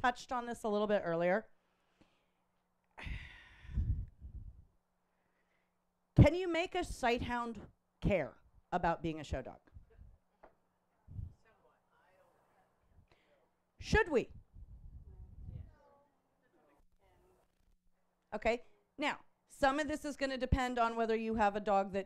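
A woman speaks with animation through a microphone, pausing often.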